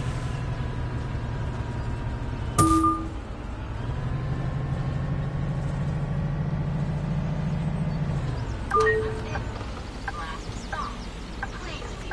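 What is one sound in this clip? A bus engine hums low and steady, rising and falling as it drives.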